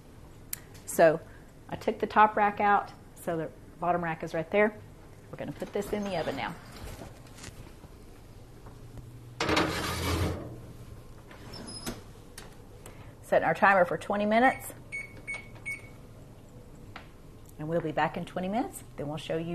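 An older woman talks calmly and close by.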